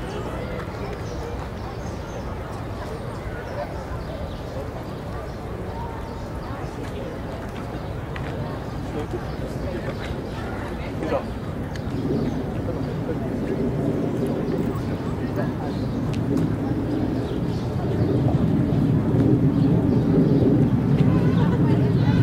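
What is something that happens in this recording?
Young hawk chicks cheep faintly.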